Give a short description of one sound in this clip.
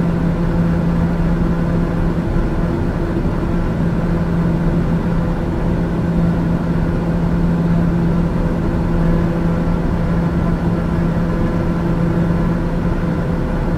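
An aircraft engine drones steadily with a low hum inside the cabin.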